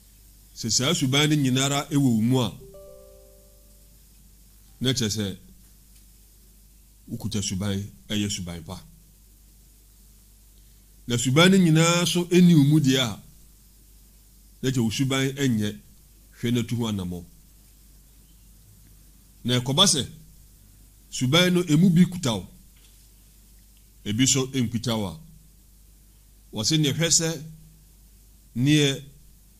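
A man speaks slowly and calmly into a close microphone, in short phrases with pauses.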